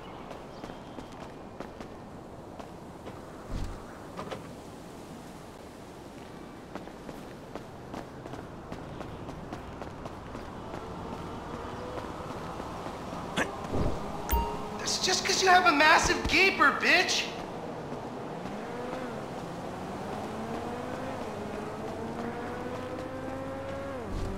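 Footsteps tap on stone as a man walks and runs.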